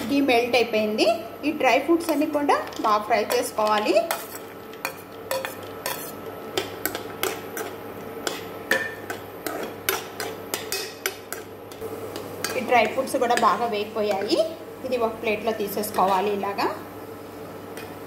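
Nuts clatter into a metal pan.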